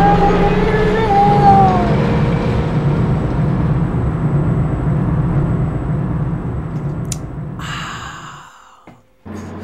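A heavy lift rumbles loudly as it descends, then fades away.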